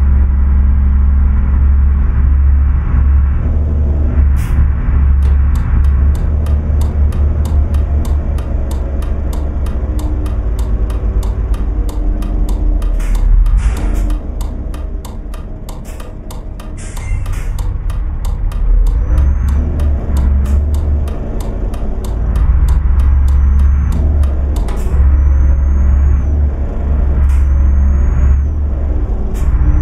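A truck's diesel engine rumbles steadily, rising and falling as it drives.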